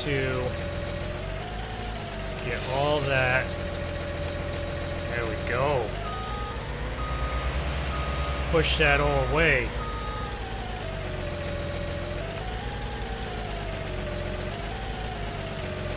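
A tractor engine hums steadily and rises and falls in pitch.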